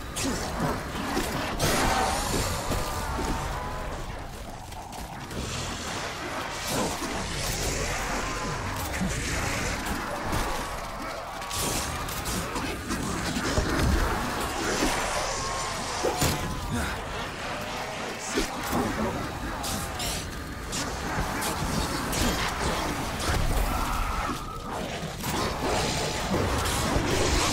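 A ray gun fires in rapid bursts.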